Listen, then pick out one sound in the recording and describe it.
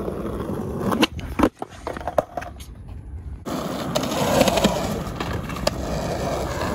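A skateboard deck clacks against concrete.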